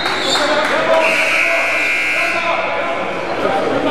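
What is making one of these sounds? A referee's whistle blows in a long shrill blast.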